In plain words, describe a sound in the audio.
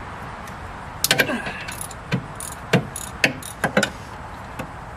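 A metal wrench clinks against metal parts.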